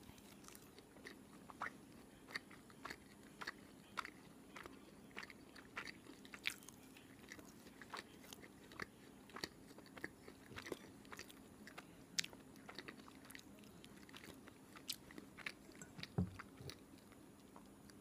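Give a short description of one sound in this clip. A young woman chews crunchy food close up, with crisp clicks.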